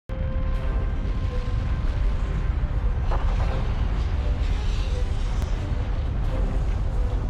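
Steam hisses steadily from cracks in the rock.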